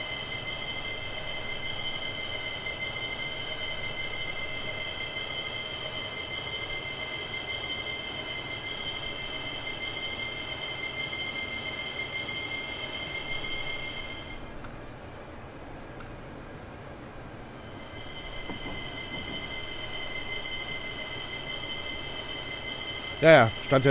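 A train's electric motors whine steadily as it runs along the track.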